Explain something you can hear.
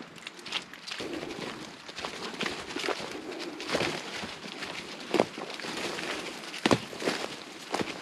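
A dog's paws rustle through dry leaves.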